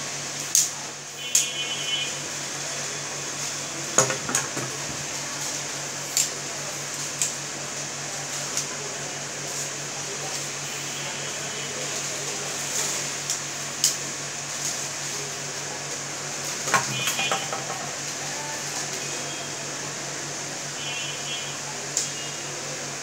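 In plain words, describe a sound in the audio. A telescoping stick clicks and rattles as it is extended and folded.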